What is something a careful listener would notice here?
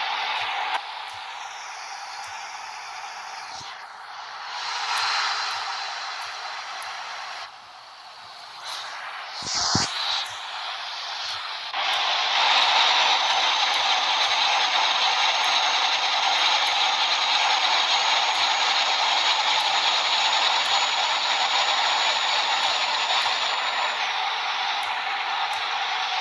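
A truck engine drones steadily on a highway.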